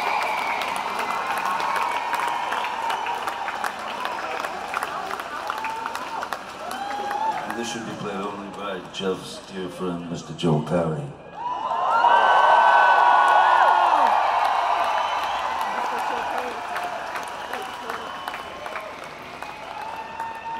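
A large crowd cheers and whistles loudly.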